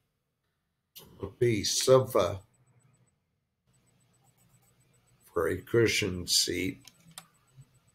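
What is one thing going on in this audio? An elderly man speaks calmly into a webcam microphone, in short phrases.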